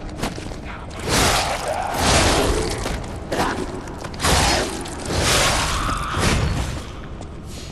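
Heavy sword blows strike and clang in a short fight.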